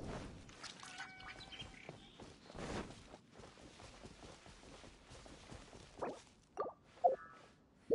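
Footsteps patter on grass as a character runs.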